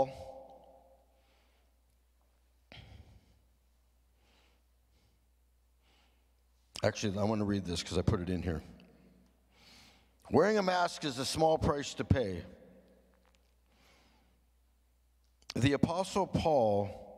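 An elderly man speaks slowly and earnestly into a microphone, with pauses between phrases.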